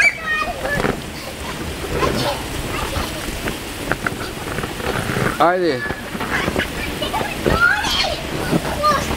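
Water sprays and splashes steadily onto a slide.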